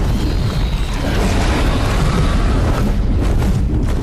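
A fireball bursts with a loud roar.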